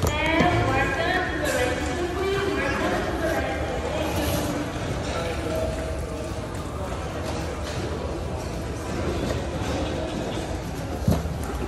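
Adults chatter nearby in a large, busy hall.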